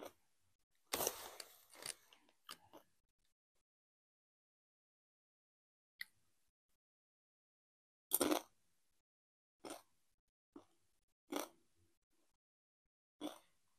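Plastic snack packaging crinkles close to a microphone.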